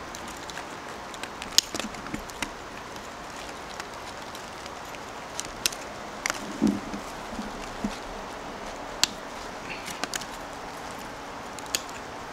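Small scissors snip through thin twigs.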